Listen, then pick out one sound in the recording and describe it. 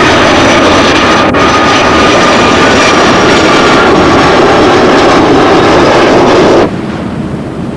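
A jet airliner roars loudly overhead as it climbs away.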